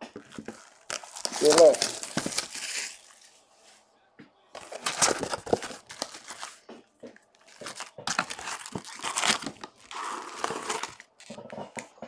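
Cardboard scrapes and rustles as a box is opened.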